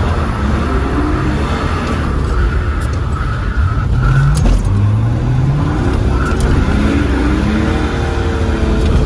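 A car engine revs hard from close by, its pitch rising and falling.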